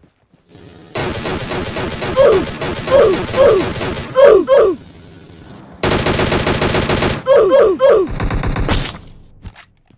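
Rapid bursts of rifle gunfire ring out in a video game.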